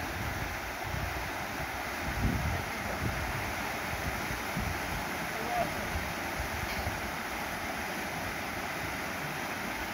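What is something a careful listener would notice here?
Water rushes and splashes steadily down a rocky waterfall, outdoors.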